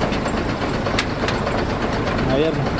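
A truck door rattles and clicks open.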